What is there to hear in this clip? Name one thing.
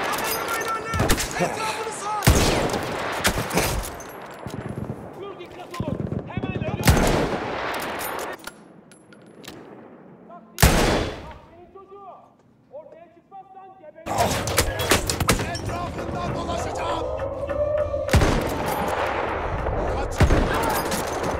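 Rifle shots crack loudly, one at a time.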